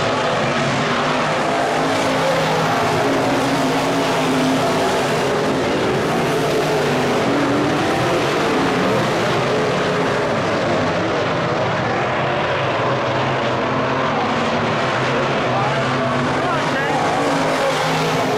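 Several race car engines roar loudly as the cars speed past on a dirt track.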